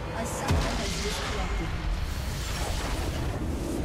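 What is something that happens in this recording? Video game battle effects burst and rumble loudly.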